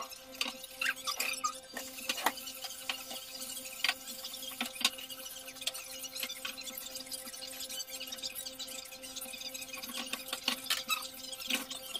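A knife cuts food on a board with quick taps.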